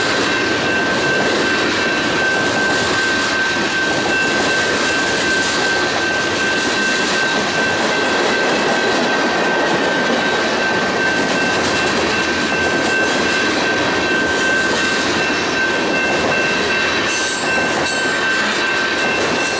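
A freight train rolls past close by, its steel wheels rumbling and clacking on the rails.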